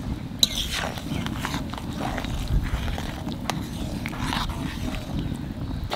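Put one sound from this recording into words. A ladle stirs and scrapes in a metal pot.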